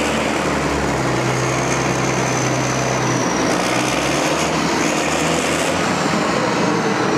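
A loader's diesel engine rumbles steadily close by.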